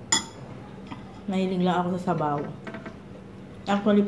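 Utensils clink against a bowl.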